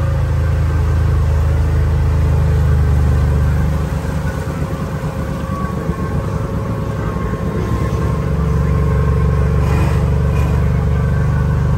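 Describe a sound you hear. Water sloshes and churns under wheels driving through a flooded track.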